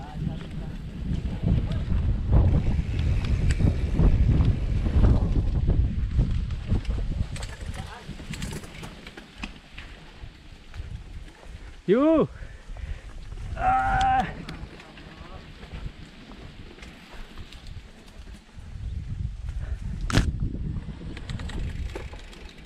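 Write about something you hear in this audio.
Bicycle tyres roll and rattle over a rough dirt trail.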